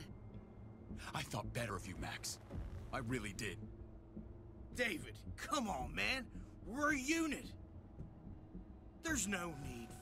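A man pleads with another man, speaking tensely.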